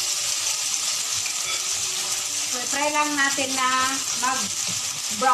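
Meat sizzles steadily in a hot frying pan.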